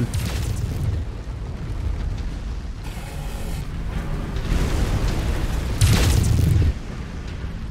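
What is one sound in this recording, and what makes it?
Heavy cannons fire in bursts.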